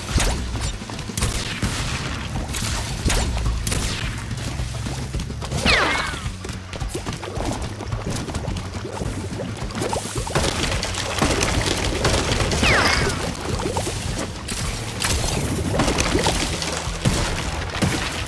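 Game music plays steadily.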